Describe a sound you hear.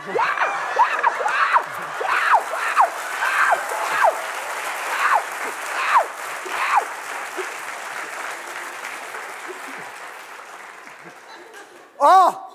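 A studio audience laughs and cheers loudly.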